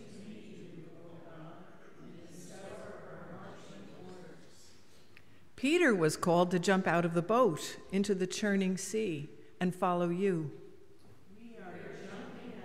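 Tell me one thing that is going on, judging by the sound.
A middle-aged woman reads aloud calmly into a microphone in an echoing hall.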